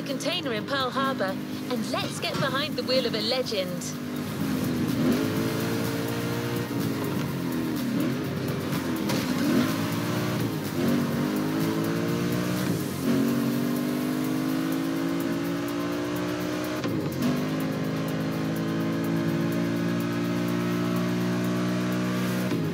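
A car engine roars and revs up and down as the car speeds along, shifting gears.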